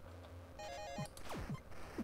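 Blocks burst apart with a crash.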